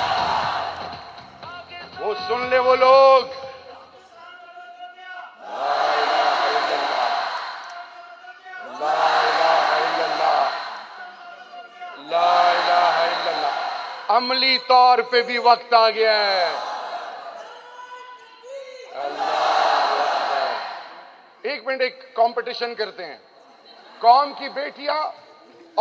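A man speaks forcefully into a microphone, his voice booming through loudspeakers in a large echoing hall.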